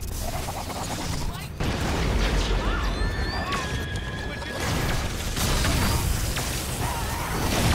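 A large monster snarls and growls.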